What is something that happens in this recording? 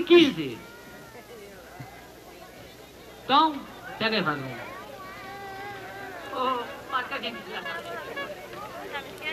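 A large crowd of men and women chatters and calls out outdoors.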